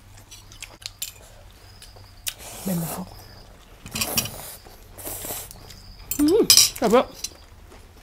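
Cutlery clinks against plates.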